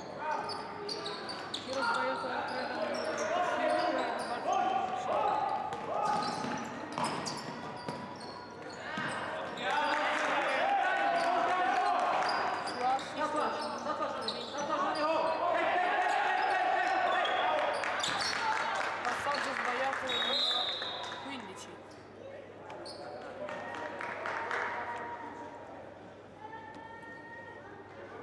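Shoes squeak on a hard court in a large echoing hall.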